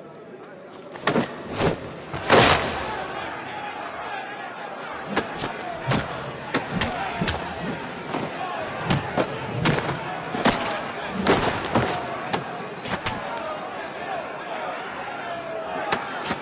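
A crowd of men shouts and cheers in an echoing room.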